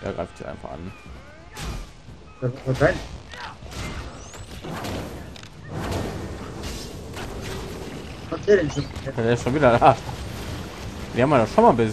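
Blades strike and clash in a fight.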